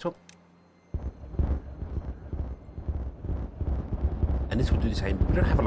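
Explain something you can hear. A second explosion bursts with a deep roar.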